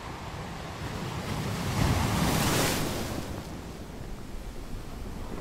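Ocean waves roll in and crash onto rocks, swelling loudest midway and then fading back to a steady wash.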